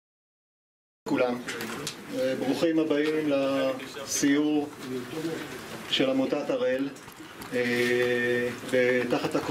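An elderly man sings loudly through a microphone.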